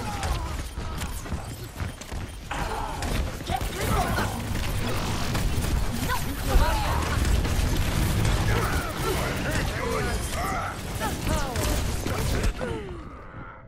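Game weapons fire in rapid bursts.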